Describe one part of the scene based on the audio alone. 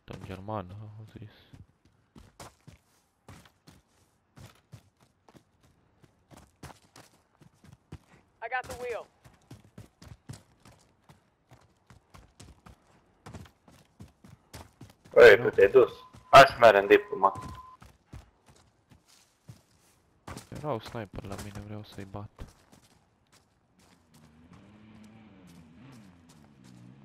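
Footsteps crunch quickly over dirt and grass.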